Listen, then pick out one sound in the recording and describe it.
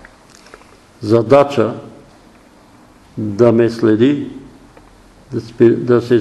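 An elderly man speaks slowly and deliberately in a room with some echo, pausing between phrases.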